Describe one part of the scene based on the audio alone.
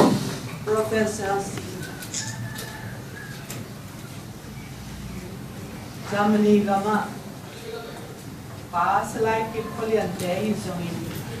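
A middle-aged woman speaks calmly into a microphone in an echoing room.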